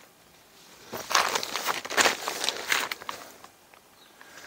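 Tent fabric rustles and crinkles.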